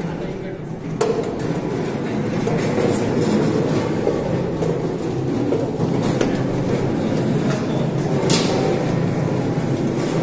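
Fruit tumbles and knocks inside a rotating drum.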